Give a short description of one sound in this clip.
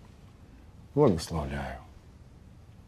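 A second man answers in a low voice close by.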